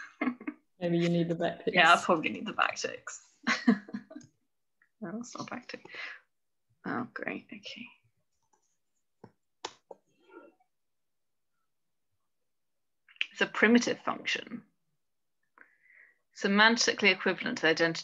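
A woman speaks calmly into a microphone, explaining in pauses.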